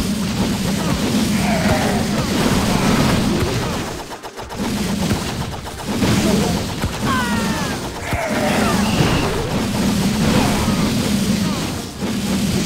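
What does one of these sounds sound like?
Buildings crumble and explode under attack.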